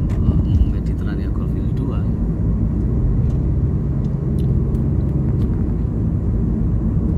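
A car engine hums steadily with road rumble from inside a moving car.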